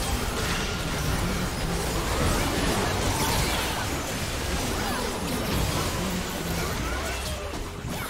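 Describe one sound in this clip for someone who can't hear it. Game spell effects crash and whoosh in a busy battle.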